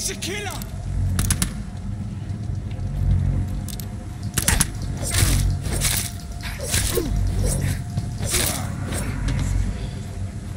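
Blows land with sharp thuds in a scuffle.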